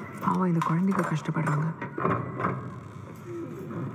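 Wooden shutters creak as they swing open.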